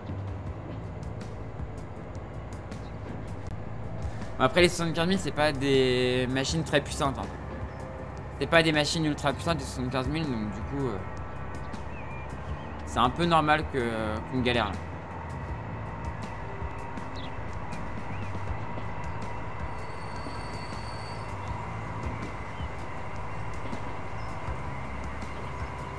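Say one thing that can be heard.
Train wheels click over rail joints.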